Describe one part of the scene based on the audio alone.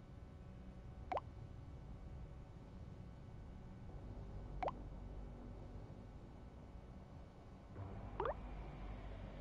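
A phone message chime pings softly.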